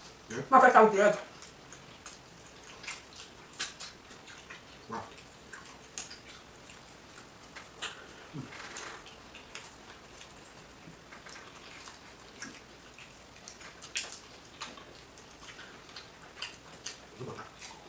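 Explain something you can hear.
A young man and a young woman chew food wetly, close up.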